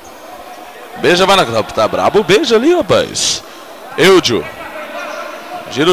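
Players shout across an echoing indoor hall.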